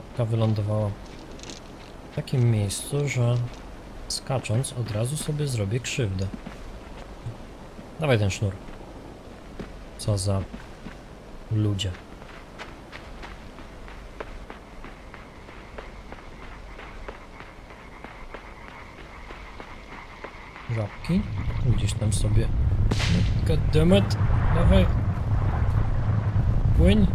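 Small footsteps patter quickly over the ground.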